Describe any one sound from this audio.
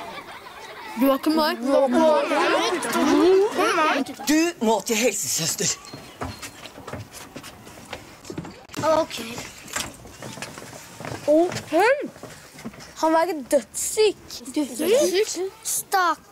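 Children talk with animation, close by.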